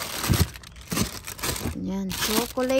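Plastic wrappers rustle and crinkle close by.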